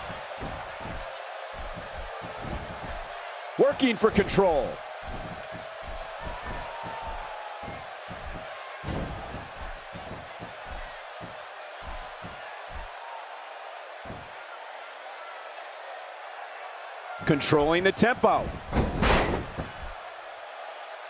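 Bodies thud and slam onto a wrestling mat.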